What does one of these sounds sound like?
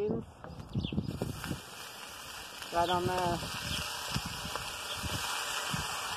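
Food pours from a can into a hot pan.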